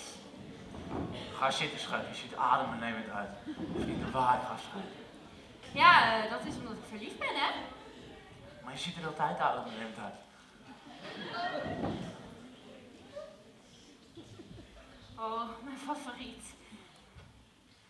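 A young woman speaks on a stage, heard from across a hall.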